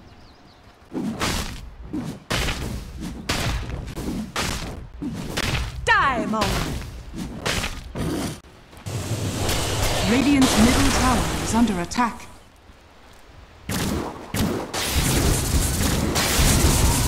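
Magic spells crackle and boom in a fast fight.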